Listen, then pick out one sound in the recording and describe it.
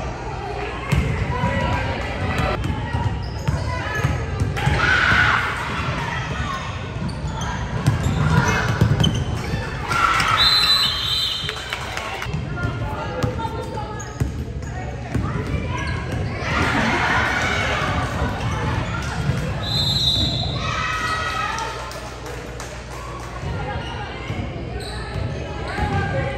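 Girls shout and call out across a large echoing gym.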